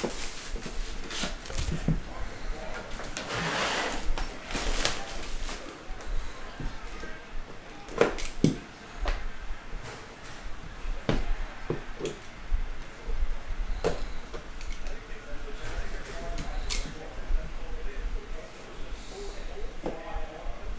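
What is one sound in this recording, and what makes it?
A cardboard box scrapes and taps as hands handle it.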